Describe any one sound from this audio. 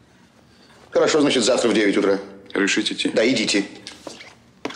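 An elderly man speaks firmly and close by.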